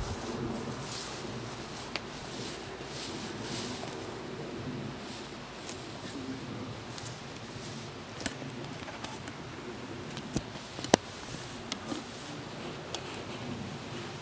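Rubber boots swish through grass.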